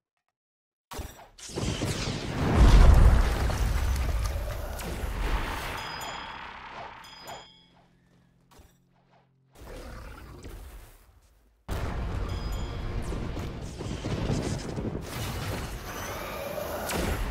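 Magic attacks burst and whoosh loudly.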